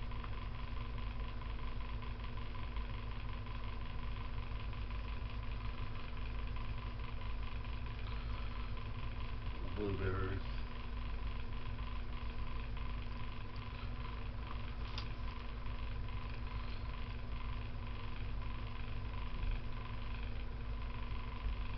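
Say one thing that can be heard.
A box fan hums steadily nearby.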